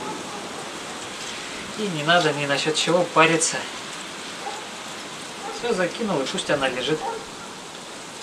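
Fish sizzles on a grill over hot coals.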